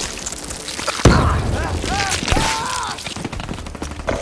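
A gun fires a rapid burst.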